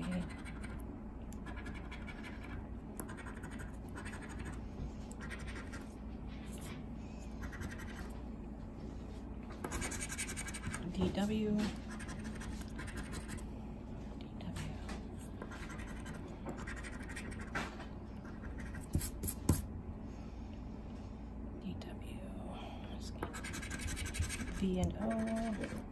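A coin scratches rapidly across a paper card in short bursts.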